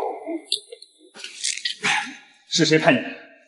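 Two men scuffle and grunt.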